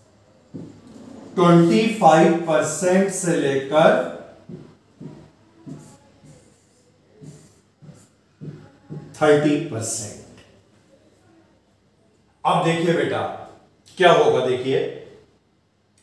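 A man speaks calmly and steadily into a close microphone, explaining.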